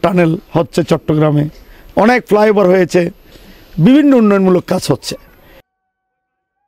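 A middle-aged man speaks into a microphone close up, with emphasis.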